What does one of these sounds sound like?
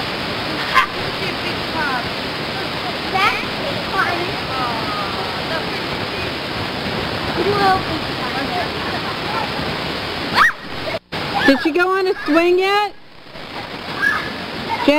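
Young children chatter and squeal close by.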